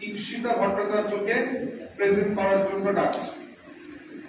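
A man speaks through a microphone into an echoing room.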